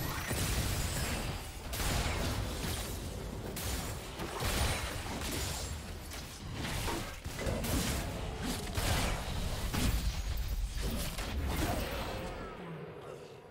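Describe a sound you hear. Game spell effects and attacks crackle and burst in quick succession.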